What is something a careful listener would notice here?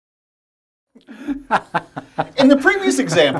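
A man laughs heartily close by.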